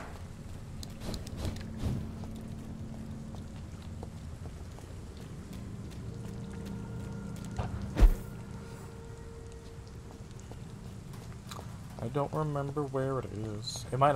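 Footsteps run over wet cobblestones.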